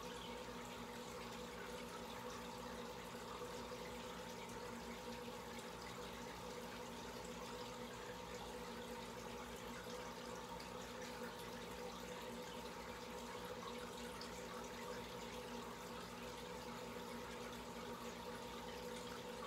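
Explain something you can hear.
Air bubbles stream and fizz up through aquarium water.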